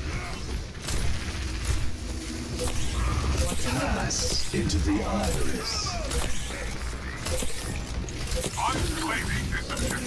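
Energy blasts and explosions boom in a video game.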